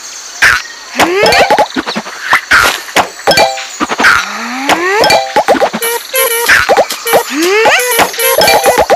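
A shot bubble launches with a rising whoosh.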